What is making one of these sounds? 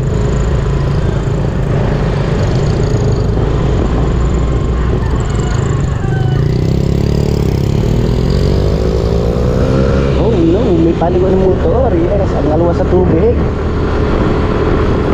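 A motorcycle engine hums and revs nearby as it rides along.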